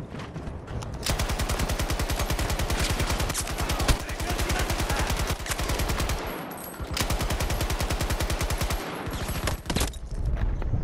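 A machine gun fires long rapid bursts.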